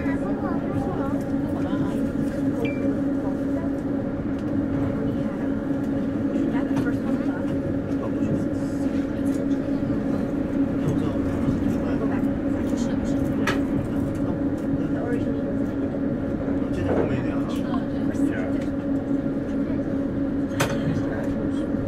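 A train rumbles steadily along the rails with a low motor hum.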